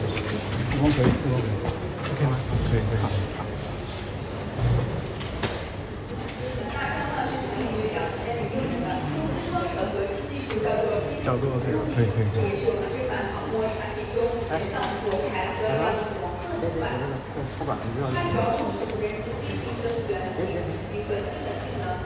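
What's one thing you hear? Several men talk quietly nearby in an echoing hall.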